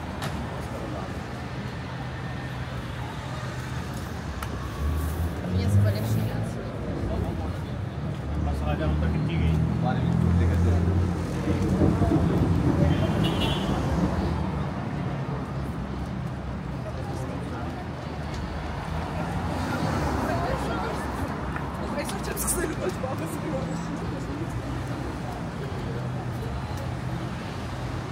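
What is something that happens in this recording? City traffic hums steadily in the background outdoors.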